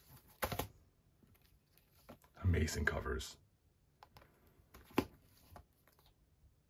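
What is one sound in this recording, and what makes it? Paperback books rustle and slide against each other up close.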